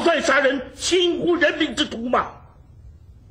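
A man speaks sternly in a deep voice.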